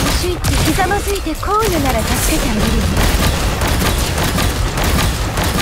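Blasts boom loudly in a game battle.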